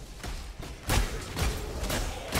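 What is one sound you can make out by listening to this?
Lightning strikes with a loud crack.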